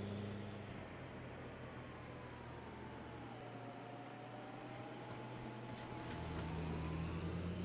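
Tyres rumble over a gravel track.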